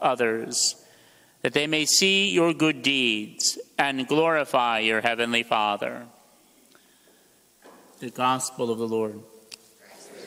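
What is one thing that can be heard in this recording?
A man chants slowly into a microphone in a large echoing room.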